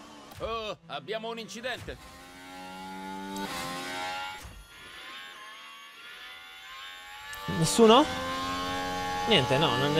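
Racing car engines whine and rev at high speed.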